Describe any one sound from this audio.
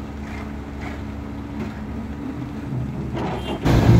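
A shovel scrapes through wet concrete.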